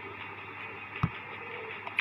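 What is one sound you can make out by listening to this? A soft click sounds as a button is tapped.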